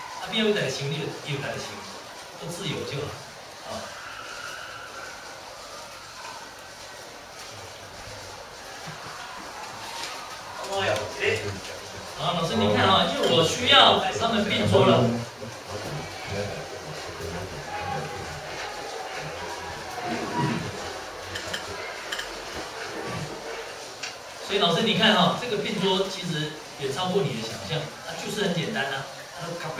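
Voices of children and a man come from a film played over loudspeakers in a room.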